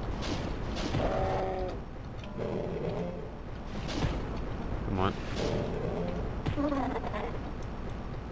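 A monster growls and groans in pain.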